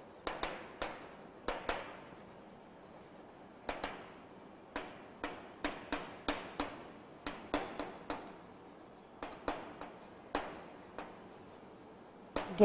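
Chalk taps and scratches on a blackboard in an echoing room.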